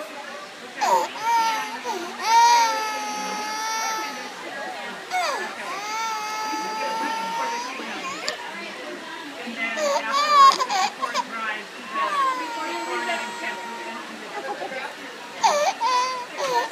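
A toddler wails and sobs close by.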